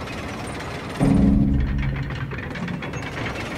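A deep mechanical groan swells and fades.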